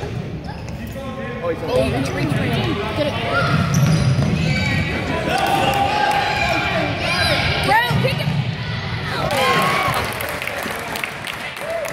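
A basketball bounces on a wooden floor as a boy dribbles.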